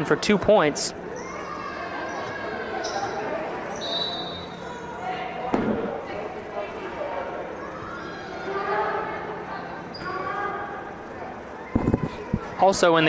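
Players and spectators call out and murmur in an echoing gym.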